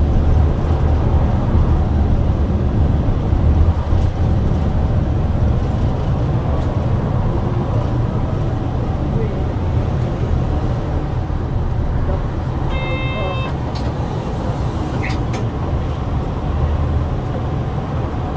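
A bus engine rumbles low and steady as the bus drives along a road.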